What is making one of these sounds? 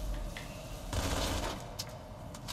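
A gun fires in a burst in a video game.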